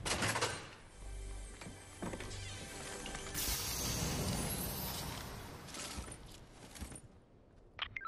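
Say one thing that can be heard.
A treasure chest opens with a bright, shimmering chime.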